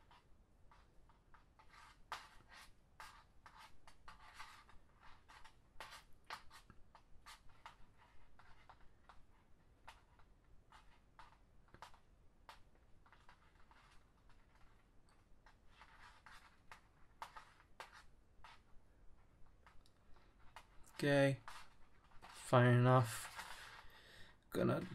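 Plastic cord rustles and clicks softly as fingers weave and tighten it.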